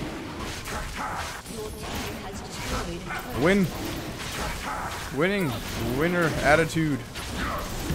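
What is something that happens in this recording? Magic spell effects whoosh and crackle in a video game.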